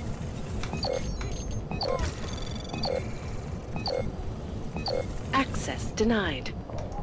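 Electronic game tones beep and chime rapidly.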